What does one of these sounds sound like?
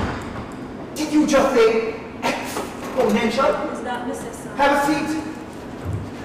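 A man talks loudly and angrily up close.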